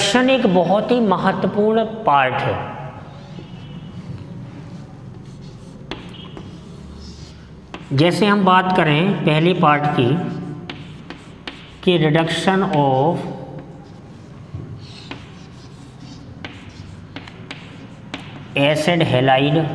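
A man speaks calmly and clearly, in short bursts with pauses, in a slightly echoing room.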